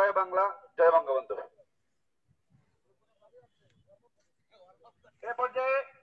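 A man shouts loudly through a megaphone.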